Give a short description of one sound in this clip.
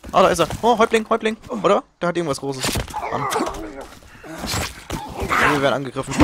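An axe strikes a body with heavy thuds.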